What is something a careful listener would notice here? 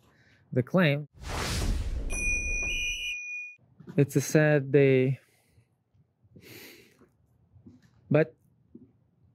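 A young man speaks with animation, close by.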